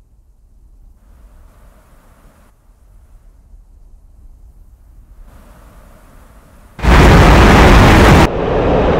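A jet engine roars as a military jet flies low overhead.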